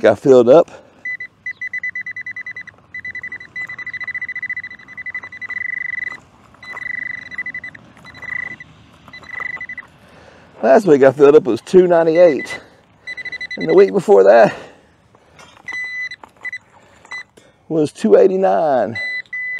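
A metal detector beeps in short rapid pulses.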